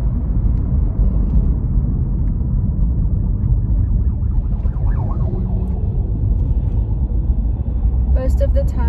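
A car rumbles steadily from the inside while driving.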